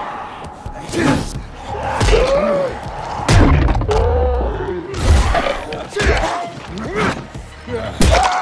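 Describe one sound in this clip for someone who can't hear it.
Heavy blows thud into flesh.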